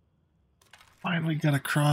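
A young man speaks into a close microphone.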